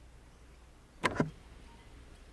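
A door latch clicks open.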